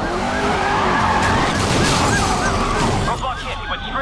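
A car smashes through a barrier with a crunch.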